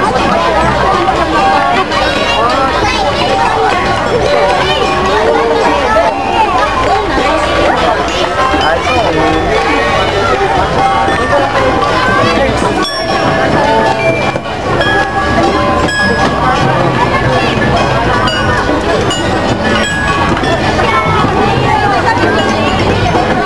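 A crowd of onlookers chatters and calls out outdoors.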